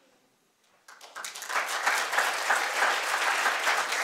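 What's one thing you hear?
An audience murmurs in a large hall.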